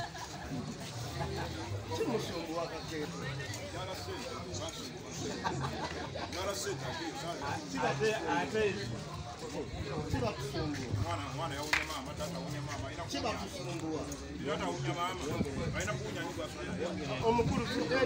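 Several men talk and argue loudly outdoors.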